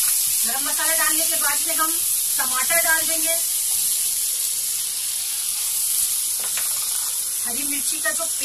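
A spatula stirs and scrapes food in a pan.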